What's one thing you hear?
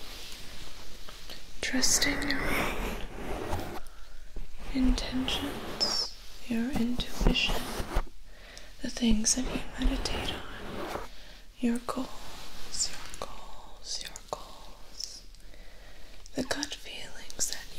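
Hands rustle and brush close to a microphone.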